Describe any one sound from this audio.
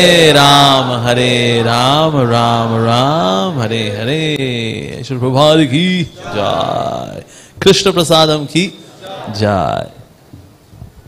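A man sings loudly and with feeling through a microphone.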